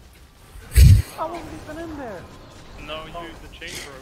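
A young man laughs briefly.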